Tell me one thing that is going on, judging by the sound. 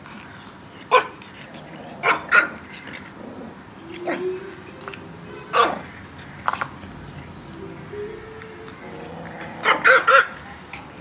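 A kitten hisses and spits sharply at a puppy.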